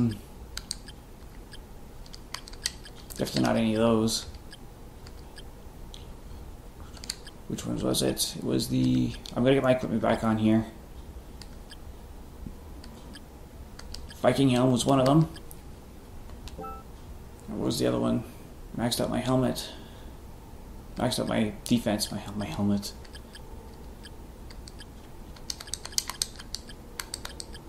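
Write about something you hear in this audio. A game menu cursor clicks softly as it moves between items.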